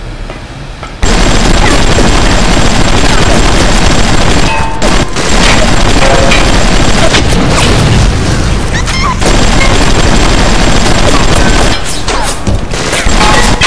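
A machine gun fires in bursts.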